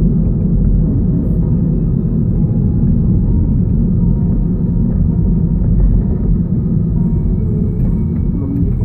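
A car engine hums and tyres roll steadily on the road, heard from inside the car.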